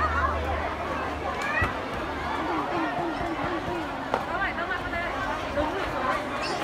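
A large crowd of children chatters and calls out outdoors.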